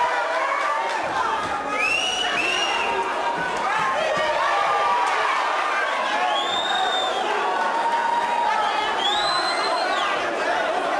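A crowd cheers and shouts loudly in an echoing hall.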